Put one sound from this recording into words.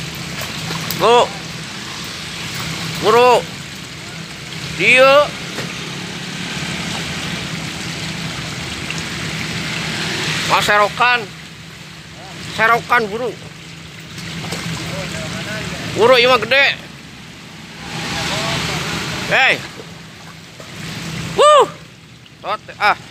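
Water splashes and churns as fish thrash at the surface.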